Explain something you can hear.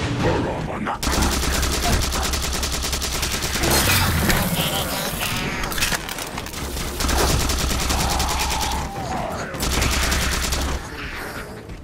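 A rapid-fire energy weapon shoots in fast bursts.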